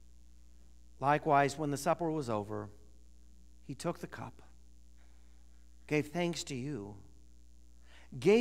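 A man speaks calmly and slowly through a microphone in an echoing room.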